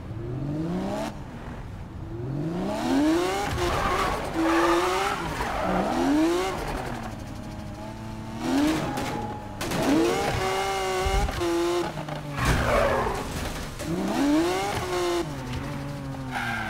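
A sports car engine revs hard, rising and falling as gears shift.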